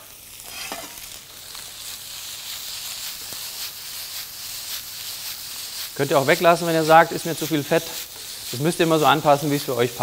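Food sizzles in a hot frying pan.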